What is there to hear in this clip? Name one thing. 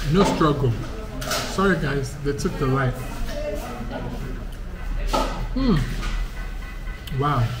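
A young man speaks calmly close by.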